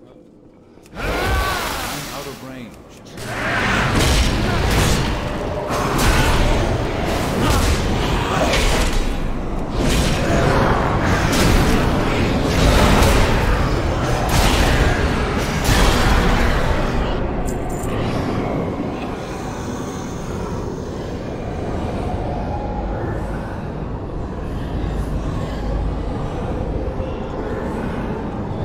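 A man talks into a close microphone.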